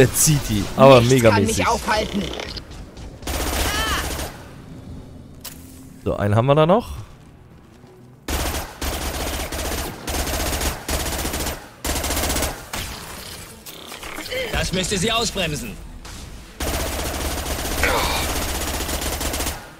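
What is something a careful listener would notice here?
Rapid gunfire bursts out in short volleys.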